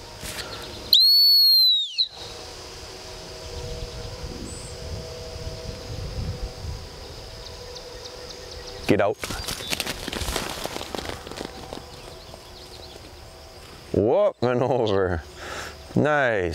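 A man blows sharp, shrill blasts on a whistle.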